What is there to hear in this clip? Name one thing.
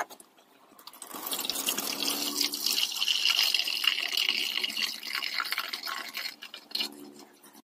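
Water pours through a strainer into a pot, splashing steadily.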